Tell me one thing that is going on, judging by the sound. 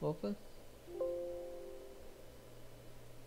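A computer alert chime sounds once.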